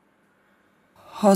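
Another woman speaks briefly nearby.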